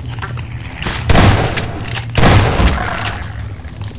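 A shotgun fires loudly twice.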